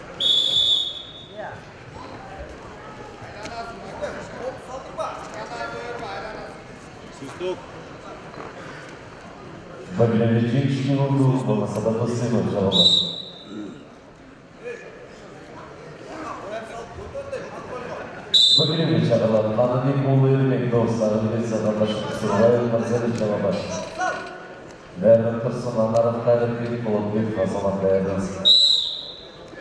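A crowd murmurs and cheers in a large echoing hall.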